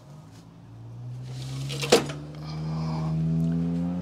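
A plastic tray clunks as it is lifted out.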